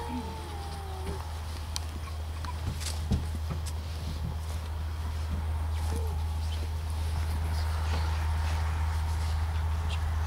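Dirt thuds onto a wooden box.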